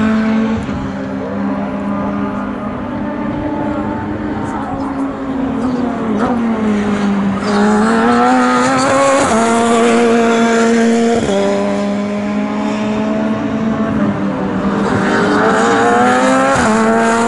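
High-pitched racing car engines scream, rising in pitch and dropping at each gear change.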